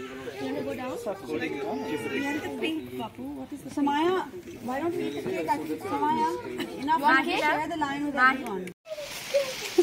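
Several adults chat and laugh together outdoors.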